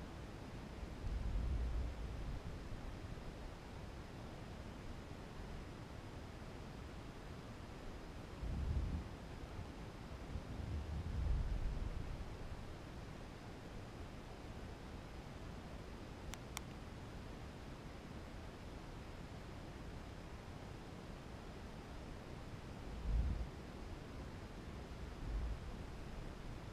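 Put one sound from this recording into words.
Wind gusts rumble against the microphone.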